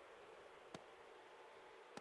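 An axe chops into a log, splitting off wood.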